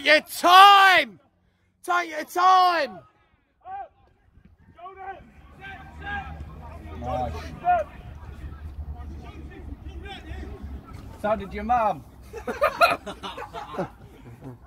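Football players shout to each other across an outdoor pitch.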